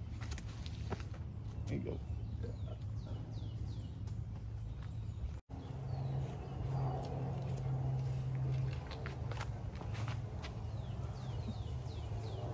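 Footsteps scuff on a hard path.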